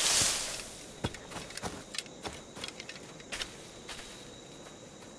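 Footsteps tap softly on the ground.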